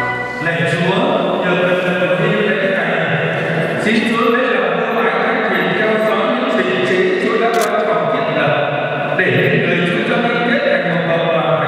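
A man sings slowly through a microphone.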